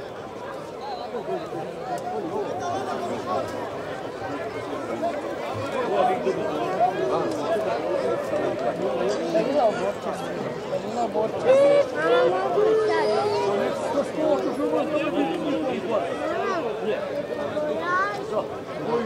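A large outdoor crowd of men and women chatters and calls out.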